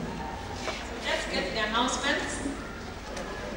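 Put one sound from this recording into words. A woman speaks with animation through a microphone in a large echoing hall.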